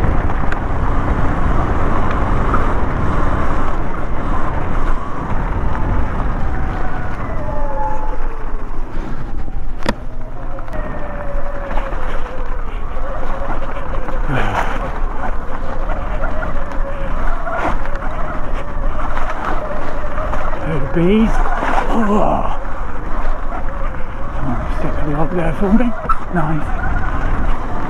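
Bicycle tyres roll and crunch over leaves and mud.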